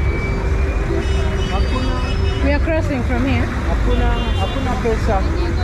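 A bus engine idles close by.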